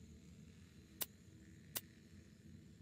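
Short menu clicks sound as a selection changes.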